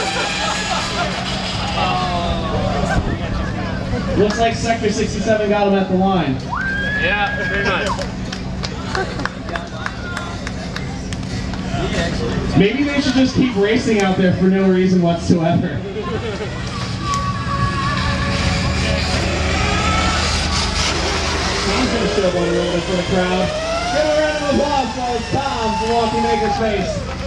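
A man announces with animation over a loudspeaker, outdoors.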